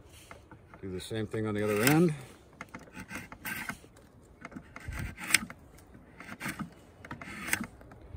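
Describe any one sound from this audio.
A drawknife shaves curls off a piece of wood in short strokes.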